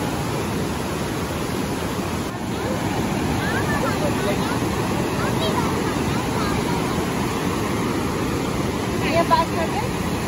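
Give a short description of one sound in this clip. Men and women talk quietly nearby in a crowd.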